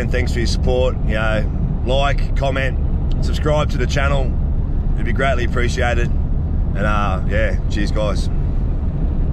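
A middle-aged man talks calmly and cheerfully, close by.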